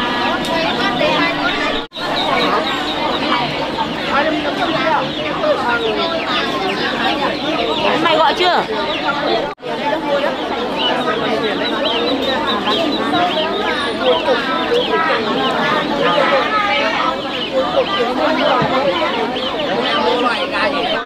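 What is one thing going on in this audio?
A crowd of men and women chatters in the background outdoors.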